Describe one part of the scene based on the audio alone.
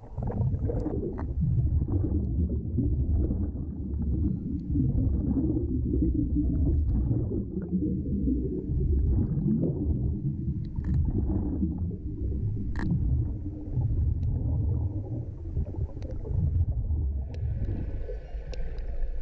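Water rumbles and swirls in a low, steady underwater wash.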